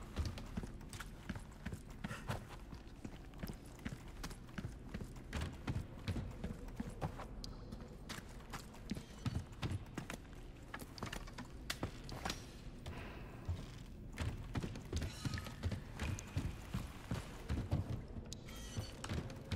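Footsteps crunch on rough ground at a steady walking pace.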